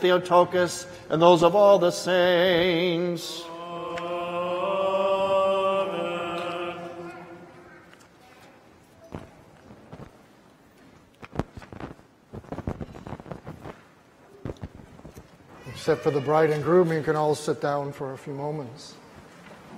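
A man chants a prayer in a deep voice, echoing in a large hall.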